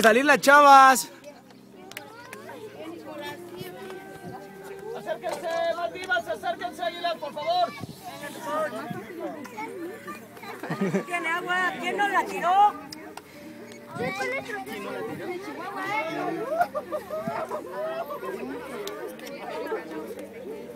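Several people chatter with animation nearby.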